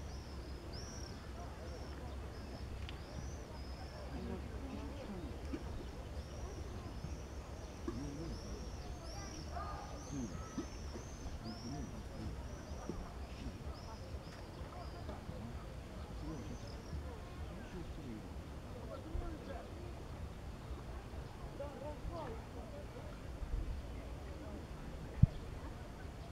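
Water laps softly against the shore.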